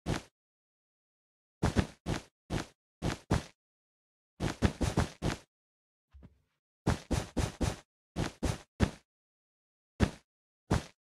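Blocks are placed and broken in a game with short, soft crunching thuds, in quick bursts and pauses.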